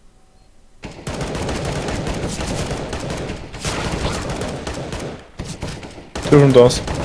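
Rapid bursts of rifle fire crack out.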